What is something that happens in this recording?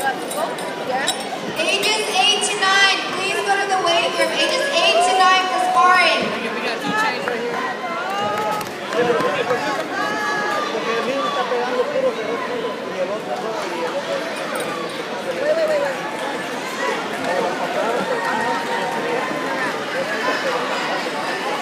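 A large crowd murmurs and chatters throughout a big echoing hall.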